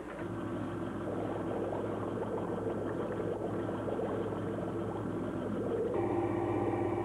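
Water churns and bubbles as a craft sinks beneath the surface.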